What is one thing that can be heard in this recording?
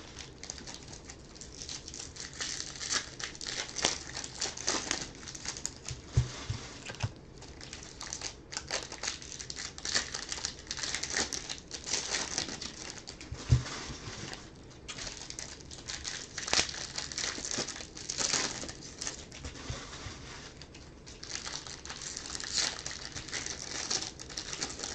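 Plastic wrappers crinkle and rustle as hands handle packs of cards.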